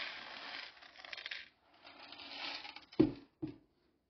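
Coffee beans pour and rattle into a plastic container.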